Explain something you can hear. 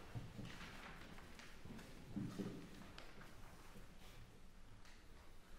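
A small string ensemble plays softly in a reverberant hall.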